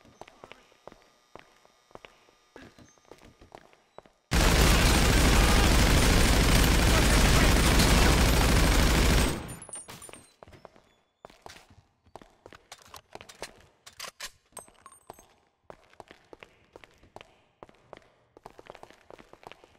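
Footsteps tap on a hard floor and stairs.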